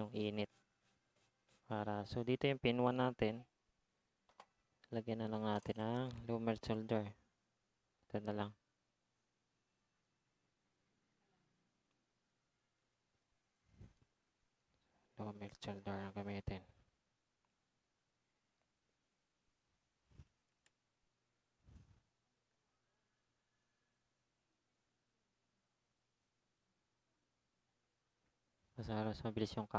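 A man talks calmly into a close microphone, in short bursts with long pauses.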